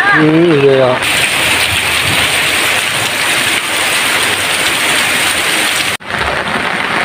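Heavy rain patters steadily on roofs and ground.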